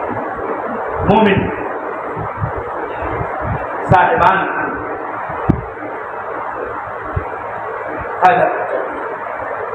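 An elderly man speaks calmly.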